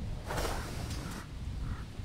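Swords clash and spells crackle in a game battle.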